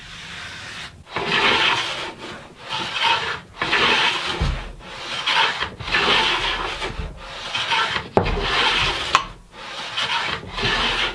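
A hand plane shaves wood in repeated strokes.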